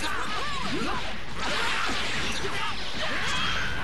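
Rapid punches and kicks land with heavy thuds.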